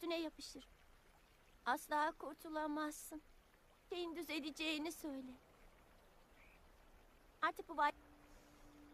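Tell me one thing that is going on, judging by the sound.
A young girl speaks quietly and slowly, close by.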